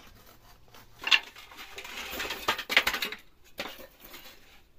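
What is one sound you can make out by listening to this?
Wooden boards clatter as they are pried apart.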